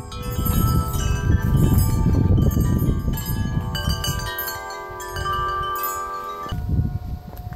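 Metal wind chimes ring with bright, overlapping tones.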